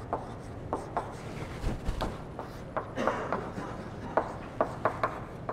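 Chalk taps and scrapes on a blackboard in short strokes.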